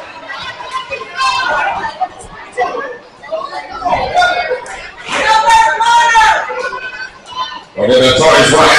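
Men shout from close by.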